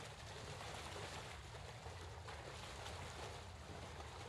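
Water splashes as a figure wades through it.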